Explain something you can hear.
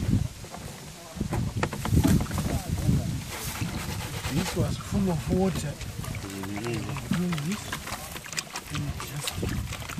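Water sloshes as a pan is swirled in a plastic tub.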